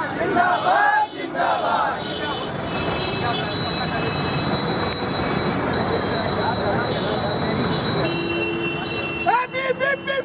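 Men shout loudly close by.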